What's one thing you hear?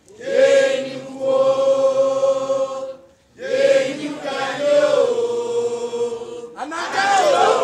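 A group of men and women chant loudly together in unison.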